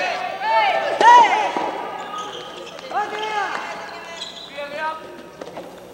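Young players shout loudly in a large echoing hall.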